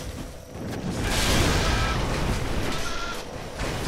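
Fire bursts with a loud whoosh.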